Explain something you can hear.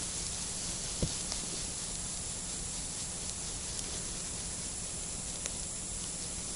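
Small clicks and taps come from hands handling a little fishing rod.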